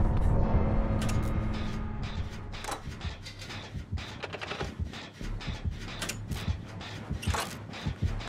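Metal parts clink and rattle as a machine is worked on by hand.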